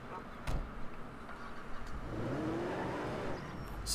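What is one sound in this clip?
A pickup truck engine hums and revs as it pulls a trailer away.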